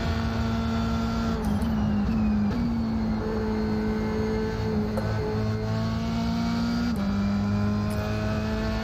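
A racing car engine roars at high revs, its pitch dropping and jumping as it shifts gears.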